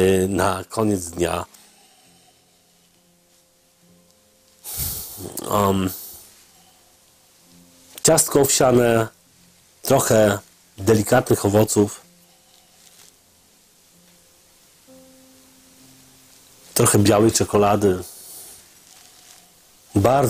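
A man talks calmly into a nearby microphone, in short bursts with pauses.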